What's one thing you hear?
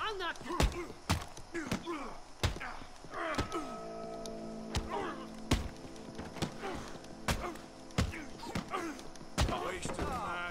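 Fists thud in a brawl with sharp punches.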